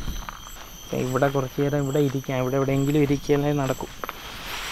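A man speaks close by, in a calm, drawn-out voice.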